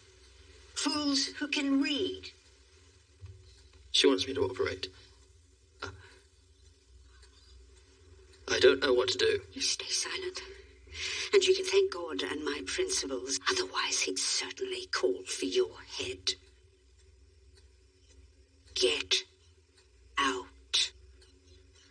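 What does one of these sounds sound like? A middle-aged woman speaks intently, close by.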